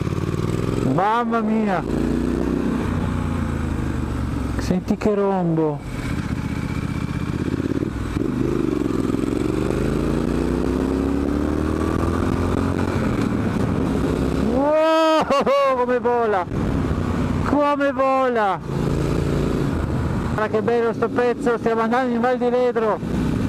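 A motorcycle engine hums steadily and revs up and down through the gears.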